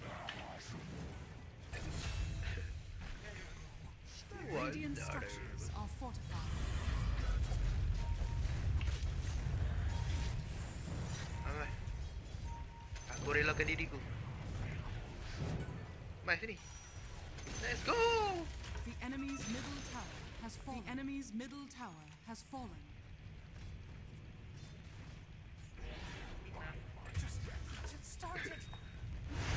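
Spell effects whoosh and crackle during a fight.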